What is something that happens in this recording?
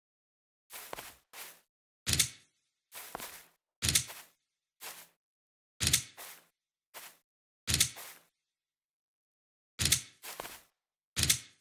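Footsteps crunch on grass in short bursts.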